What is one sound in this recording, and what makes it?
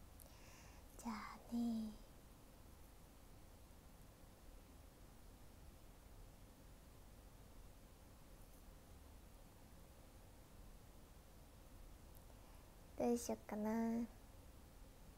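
A young woman speaks softly and briefly, close to a microphone.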